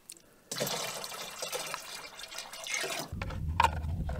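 Water pours and splashes into a plastic container.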